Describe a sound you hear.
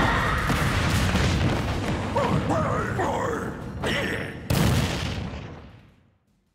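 Video game explosions boom and crackle, then fade away.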